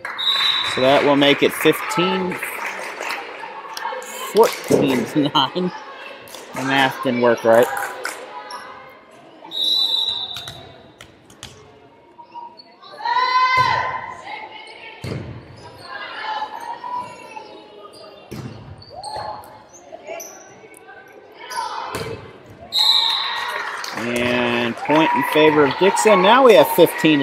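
A volleyball is struck with sharp thumps in a large echoing gym.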